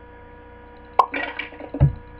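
Paintball pellets splat against a target in quick pops.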